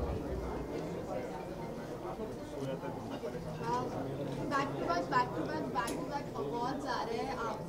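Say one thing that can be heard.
A woman speaks into microphones close by, with a cheerful tone.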